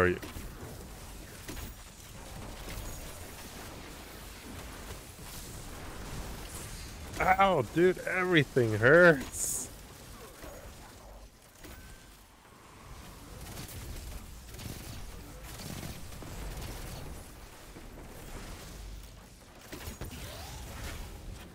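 Guns fire in bursts of shots.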